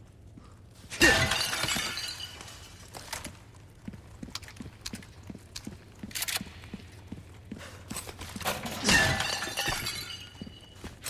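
A clay vase smashes and its pieces clatter.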